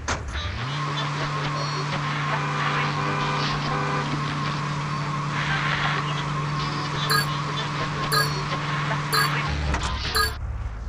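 A truck engine drones steadily in low gear.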